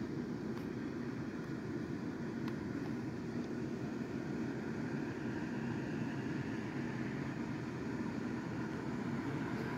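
An inflatable's electric blower fan whirs steadily close by.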